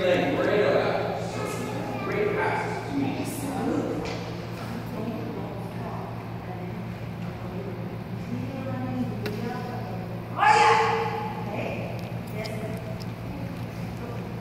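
A woman speaks calmly in a large echoing room.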